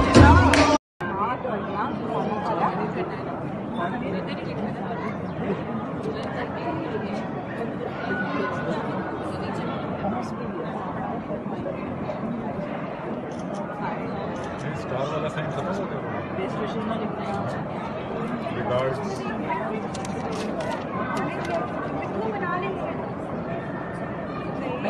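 Several women murmur softly nearby.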